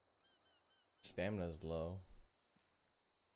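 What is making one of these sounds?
A young man speaks briefly into a close microphone.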